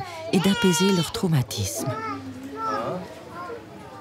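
A young boy talks cheerfully close by.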